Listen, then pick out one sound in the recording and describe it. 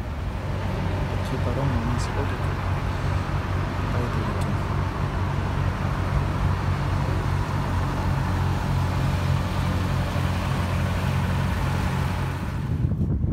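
A boat engine drones steadily over the water.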